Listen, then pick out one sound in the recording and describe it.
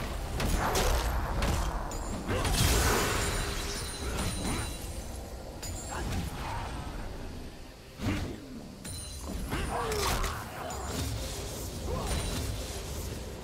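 Magic spells whoosh and burst in a video game battle.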